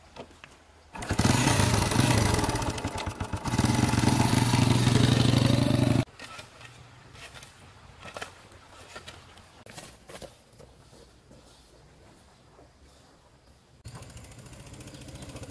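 A motor scooter engine starts and revs loudly nearby.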